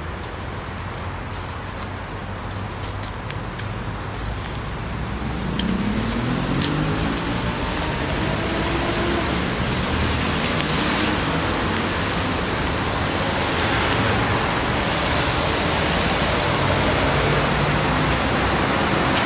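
Sandals slap on a paved path with steady footsteps.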